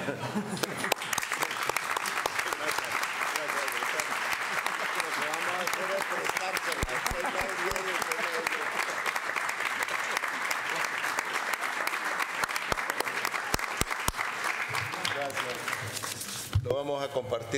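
A crowd applauds steadily in a large room.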